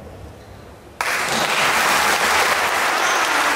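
An audience bursts into loud applause.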